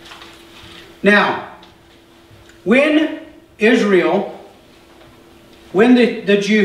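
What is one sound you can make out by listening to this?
A man speaks calmly through a microphone in a room with a slight echo.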